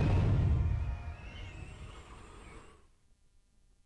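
Debris crashes and rumbles loudly, then fades.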